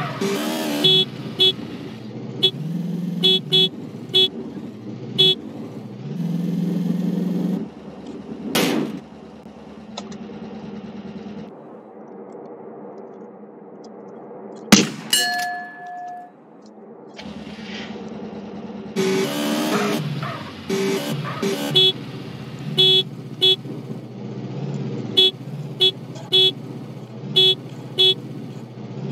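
A motorbike engine revs and roars.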